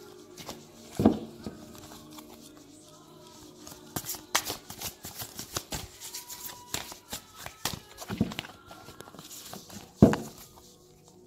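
Cards rustle and thump as a deck is shuffled close by.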